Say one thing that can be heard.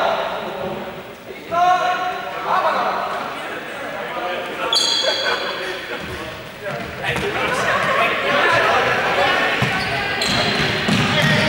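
Young adults shout and call out as they run in a large echoing hall.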